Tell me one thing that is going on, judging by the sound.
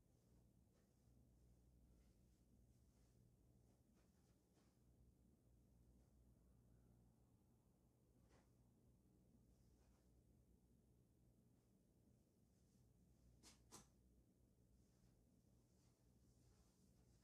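Sneakers tap and scuff softly on a carpeted floor.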